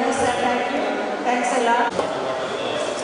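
A middle-aged woman speaks calmly into a microphone, heard through a loudspeaker.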